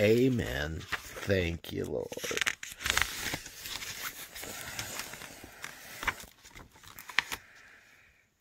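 A stiff page rustles as it is turned.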